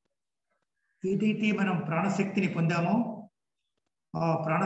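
A middle-aged man speaks calmly into a nearby microphone, as if on an online call.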